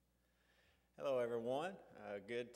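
A middle-aged man speaks clearly into a microphone.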